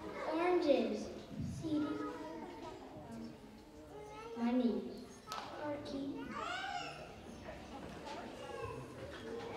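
A young girl speaks into a microphone, heard through loudspeakers in a large hall.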